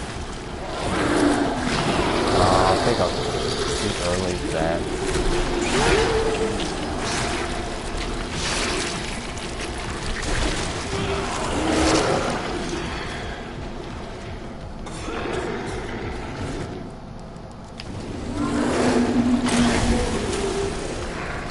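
A creature groans and snarls close by.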